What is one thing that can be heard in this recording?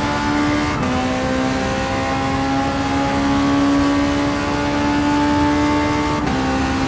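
A racing car engine roars at high revs, climbing slowly in pitch and dropping briefly with each gear change.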